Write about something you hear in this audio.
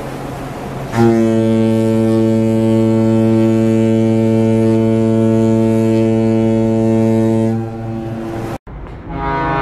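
A ferry's horn sounds a long, loud, deep blast.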